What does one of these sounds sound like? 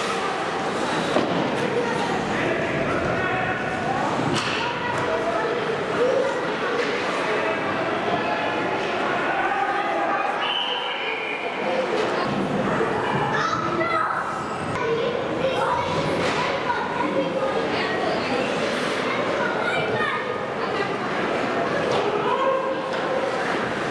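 Spectators and players shout and call out in a large echoing hall.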